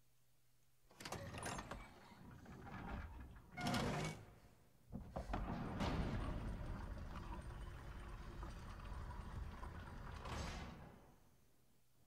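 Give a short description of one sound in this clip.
A heavy stone door rumbles and grinds open.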